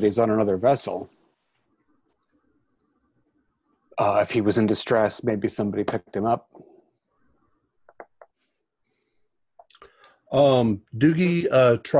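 A man speaks over an online call, in short bursts with pauses.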